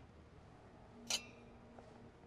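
Two glasses clink together in a toast.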